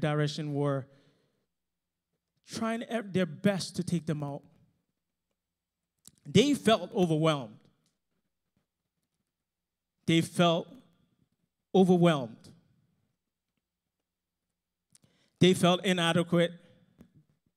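A man speaks slowly and calmly into a microphone, with long pauses, heard through loudspeakers.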